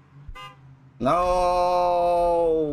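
A bright fanfare blares out loudly on reaching the finish.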